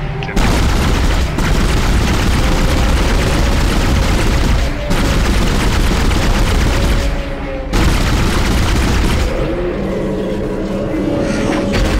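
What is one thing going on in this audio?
A weapon fires in rapid, roaring bursts.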